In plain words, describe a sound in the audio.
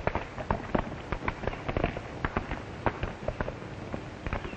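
Horse hooves clatter on hard ground as horses gallop away.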